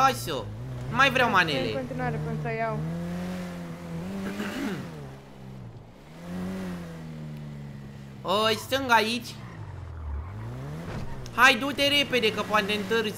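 A car engine revs and hums steadily.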